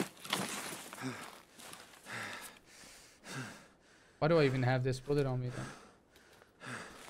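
A man speaks into a close microphone in a casual, animated way.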